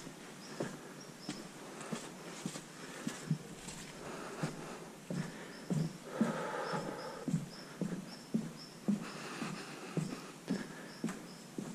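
Footsteps thump on wooden boards.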